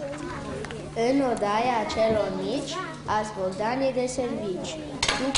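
A boy sings into a microphone.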